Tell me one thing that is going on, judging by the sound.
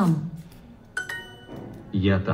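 A bright, short chime rings out.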